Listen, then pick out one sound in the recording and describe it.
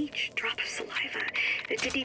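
A cash register drawer rattles open.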